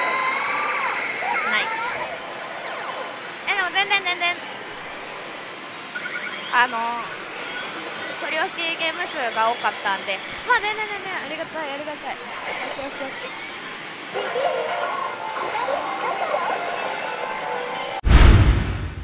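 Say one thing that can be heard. A slot machine plays bright electronic jingles and effects.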